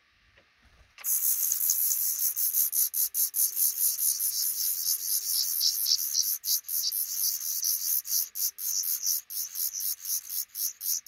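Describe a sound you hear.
Baby birds cheep loudly and rapidly, close by.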